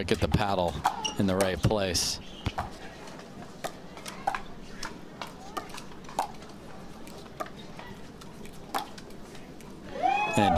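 Paddles pop sharply against a plastic ball in a quick back-and-forth rally.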